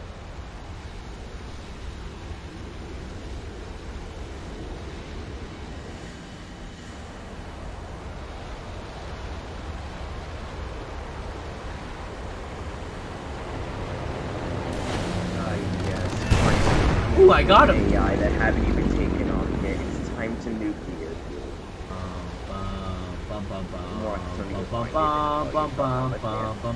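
A jet engine roars steadily, swelling louder for a while before easing off.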